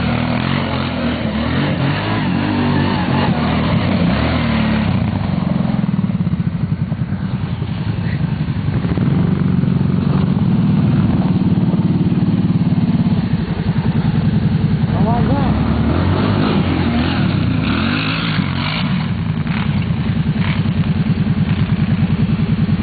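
A quad bike engine revs and idles close by.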